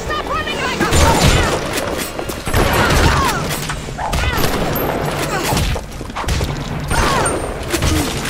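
Shotgun blasts boom loudly several times.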